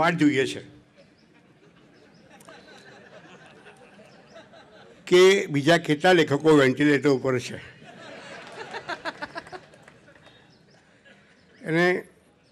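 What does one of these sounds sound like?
An elderly man speaks calmly into a microphone over loudspeakers.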